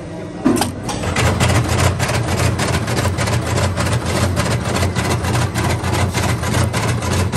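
A winding machine whirs with a fast, steady rattling.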